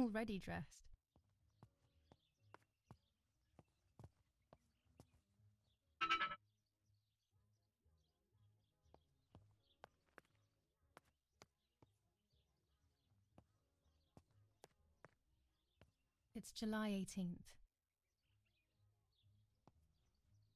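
Footsteps tap on a tiled floor.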